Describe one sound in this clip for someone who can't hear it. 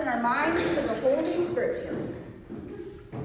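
A woman speaks close by in an echoing room.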